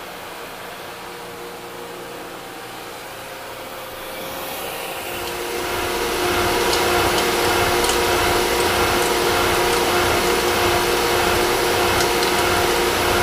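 A milling machine hums steadily.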